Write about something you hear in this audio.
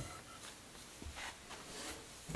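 A wooden stick taps on a concrete floor.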